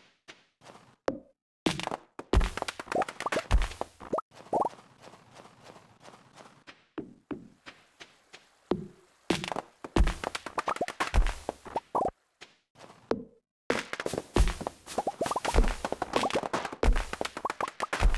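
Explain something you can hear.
An axe chops into a tree with sharp, repeated thuds.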